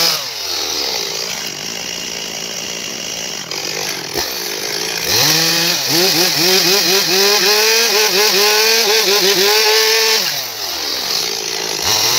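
A gasoline chainsaw idles.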